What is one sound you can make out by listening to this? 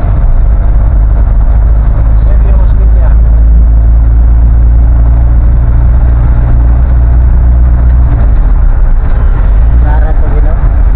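A vehicle engine drones loudly and steadily from inside the cab.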